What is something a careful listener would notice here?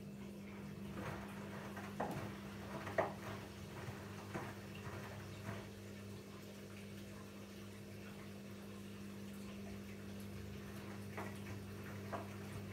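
Wet laundry thumps and sloshes inside a turning drum.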